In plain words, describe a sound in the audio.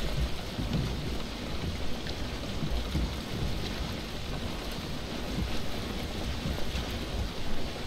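A wooden boat crashes through rough waves, with water splashing against the hull.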